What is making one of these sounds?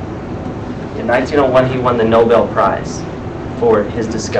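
A man speaks calmly, heard from a short distance.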